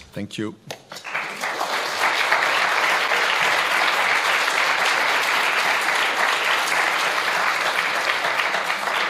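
An audience applauds steadily.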